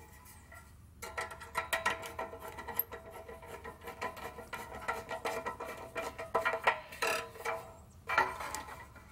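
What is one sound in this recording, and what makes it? A small engine starts and runs with a steady hum.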